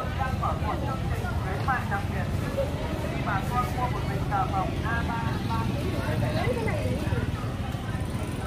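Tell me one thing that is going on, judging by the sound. A motorbike engine passes by.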